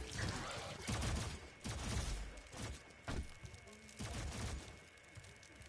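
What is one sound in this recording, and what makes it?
An explosion bursts and rumbles.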